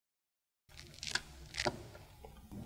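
A plastic plug clicks into a socket.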